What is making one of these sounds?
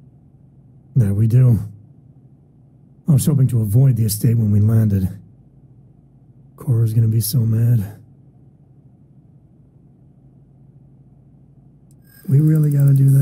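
A man speaks calmly in a low voice, close to the microphone.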